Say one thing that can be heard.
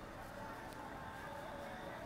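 Footsteps of passersby sound on a street.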